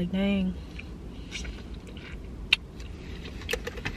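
A young woman chews food.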